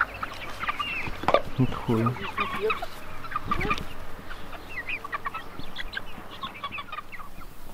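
Hens peck at the ground with quick taps.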